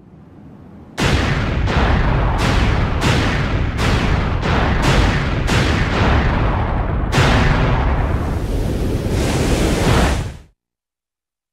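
Loud explosions boom one after another, rumbling deeply.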